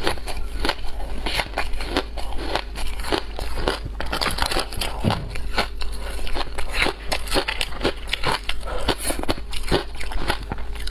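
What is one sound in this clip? A young woman crunches and chews ice close to a microphone.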